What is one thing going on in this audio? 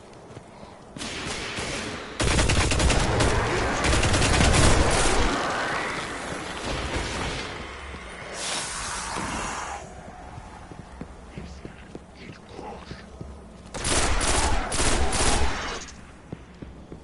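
Rapid gunfire rattles loudly in quick bursts.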